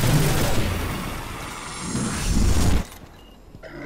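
A large explosion booms with a rumbling roar.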